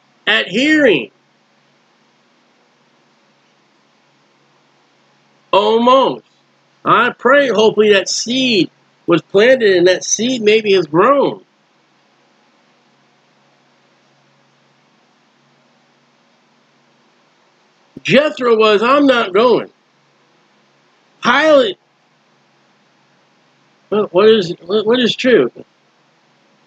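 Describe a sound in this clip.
A middle-aged man talks calmly into a microphone, in short bursts with long pauses.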